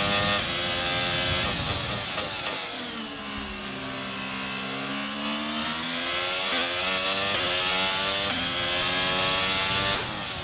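A racing car engine screams at high revs, dropping in pitch through downshifts and rising again as it accelerates.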